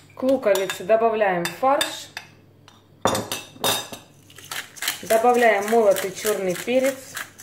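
Hands squish and mix soft ground meat in a bowl.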